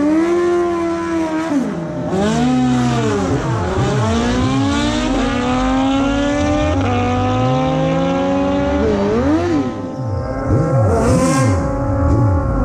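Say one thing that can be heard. A motorcycle engine revs up and down sharply, close by.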